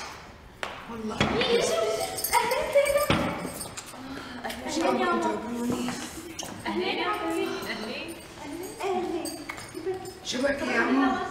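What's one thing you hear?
Several women talk and greet each other with animation, close by.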